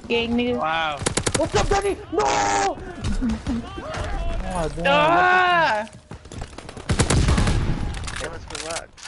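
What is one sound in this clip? Rifle gunfire rattles in quick bursts.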